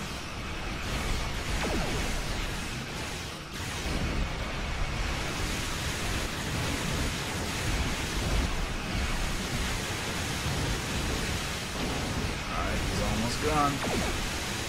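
Laser weapons fire and zap repeatedly.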